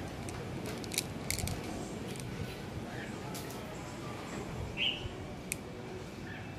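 Stone beads click softly against each other.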